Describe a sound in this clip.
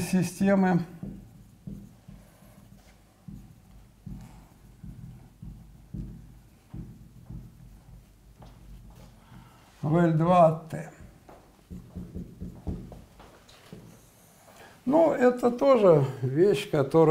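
An elderly man speaks slowly in a lecturing tone, with pauses.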